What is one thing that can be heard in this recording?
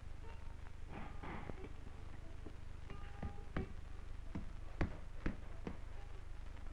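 A hammer taps sharply on metal, in uneven single blows.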